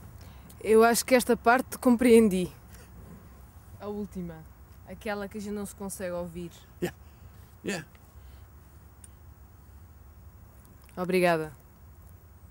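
A young woman speaks calmly and closely, with pauses.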